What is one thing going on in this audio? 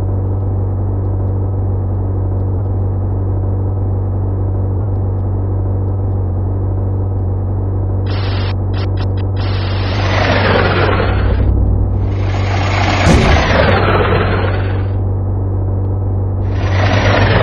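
A truck engine hums steadily as it drives.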